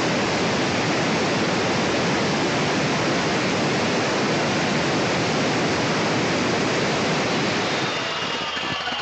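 An angle grinder cuts loudly into brick with a harsh, steady grinding.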